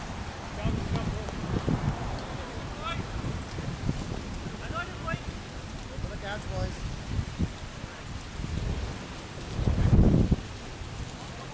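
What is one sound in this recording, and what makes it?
Wind gusts buffet the microphone.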